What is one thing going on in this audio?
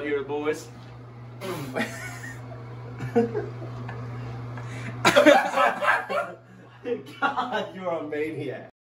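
A young man talks and laughs nearby.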